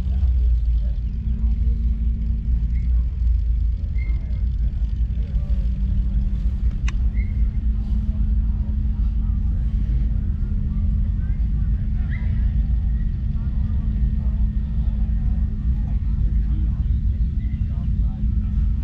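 A crowd murmurs faintly in the distance.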